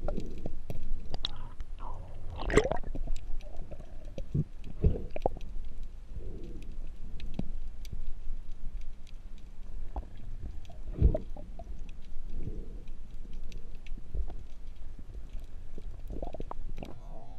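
Underwater, the water rumbles dully with faint crackling and clicking.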